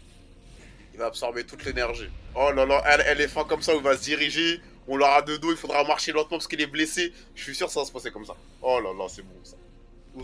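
A young man talks with animation, heard close through a microphone.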